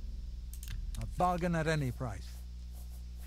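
A man speaks a short phrase close by.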